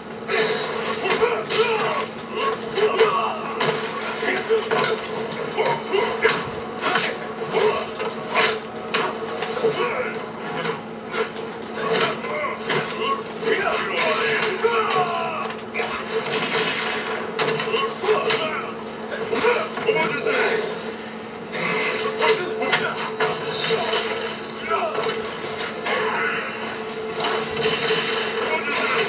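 Punches and kicks land with sharp thuds and smacks in a fast fight.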